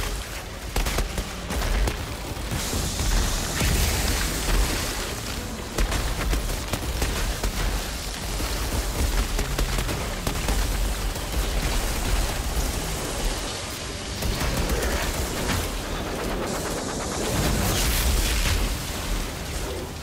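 Energy blasts crackle and hum.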